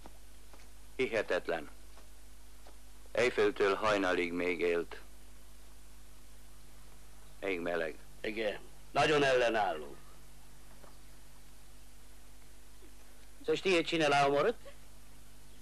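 A man speaks in short, loud bursts.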